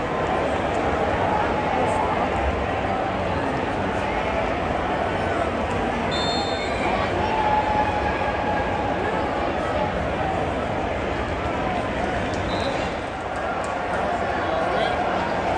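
Nearby fans shout and chatter.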